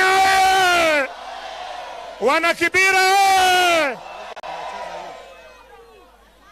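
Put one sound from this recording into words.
A large crowd cheers and roars.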